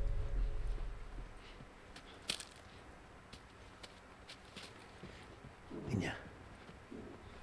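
Footsteps crunch softly over debris on a hard floor.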